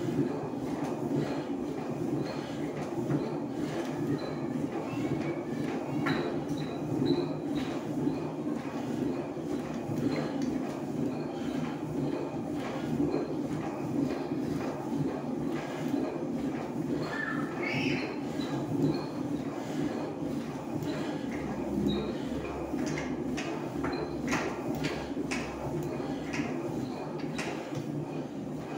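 An elliptical exercise machine whirs and rumbles steadily.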